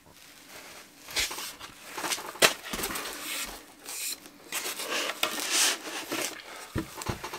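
Boards of wood scrape and knock against a hard surface.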